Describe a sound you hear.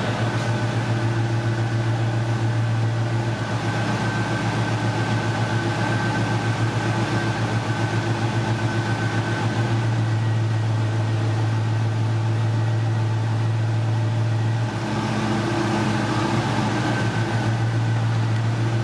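An engine idles close by with a steady, throbbing rumble.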